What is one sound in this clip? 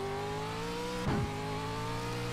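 A gearbox clunks as the race car shifts up a gear.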